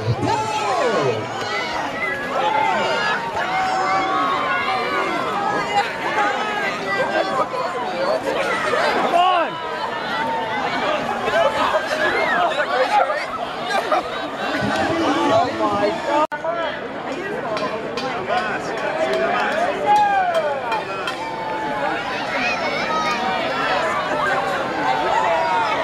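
A crowd of men, women and children cheers and shouts outdoors.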